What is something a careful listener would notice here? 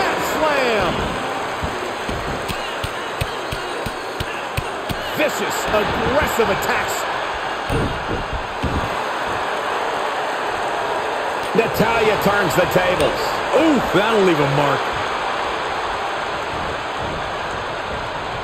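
A large crowd cheers steadily throughout.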